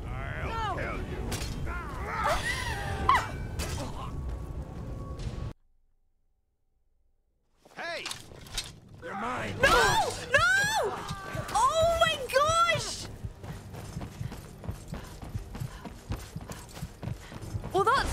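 A young woman talks and laughs with animation into a close microphone.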